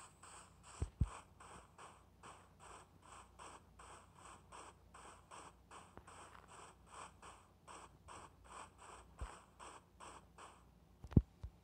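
Footsteps crunch steadily on grass at a walking pace.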